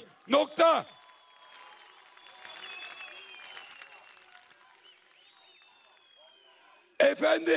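A large crowd cheers and whistles.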